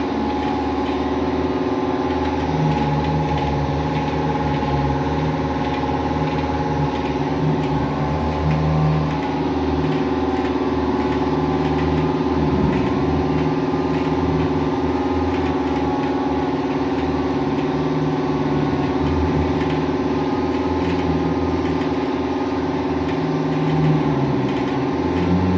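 A spray gun hisses steadily up close.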